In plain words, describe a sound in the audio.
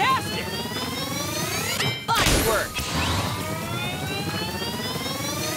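Bright video game chimes ring out with rising tones.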